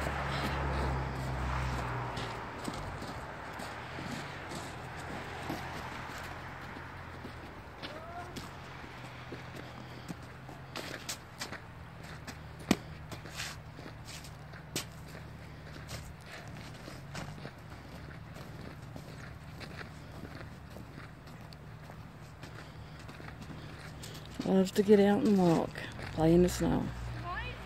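Boots crunch and scuff on packed snow.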